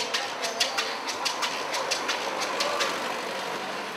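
Footsteps tap on a street close by.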